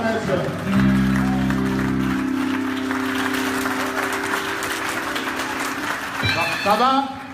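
A crowd claps in a large room.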